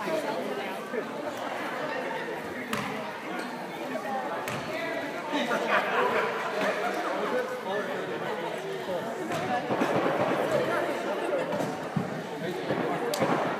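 A man talks to a group of players close by.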